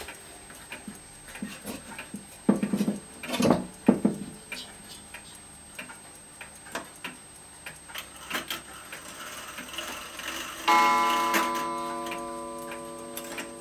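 A wall clock ticks steadily.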